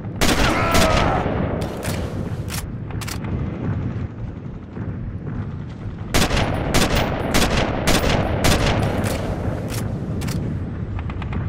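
Rifle shots crack repeatedly and echo.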